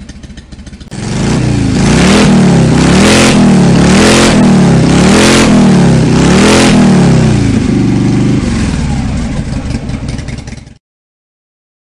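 A motorcycle engine revs up and down repeatedly.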